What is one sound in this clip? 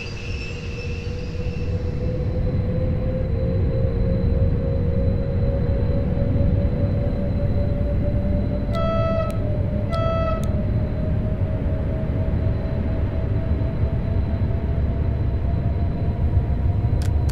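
An electric train motor whines, rising slowly in pitch as it speeds up.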